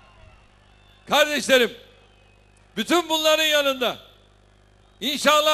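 A large crowd chants in unison.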